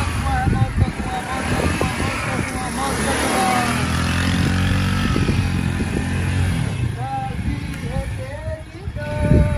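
A motorcycle engine putters at low speed close by.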